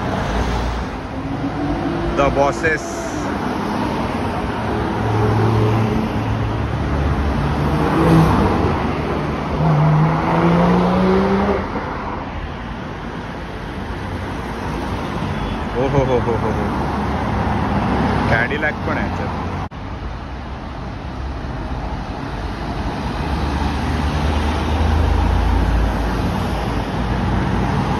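Car engines hum steadily as cars drive past one after another on a road outdoors.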